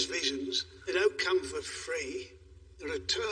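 A middle-aged man speaks quietly and earnestly nearby.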